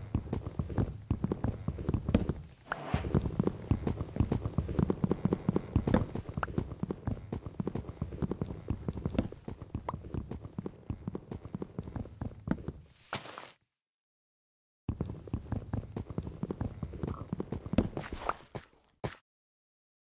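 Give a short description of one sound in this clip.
Blocks of wood are chopped with rapid, hollow knocks.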